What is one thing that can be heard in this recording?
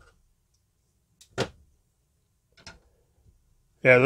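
A knife is set down on a hard surface with a light clack.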